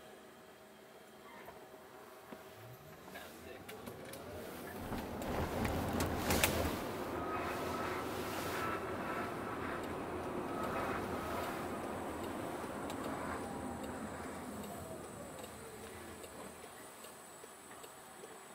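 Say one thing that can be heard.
An electric motor whines, rising in pitch as a car speeds up and falling as it slows.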